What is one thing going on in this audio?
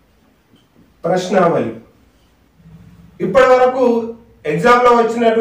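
A man speaks clearly and with animation, close to a microphone.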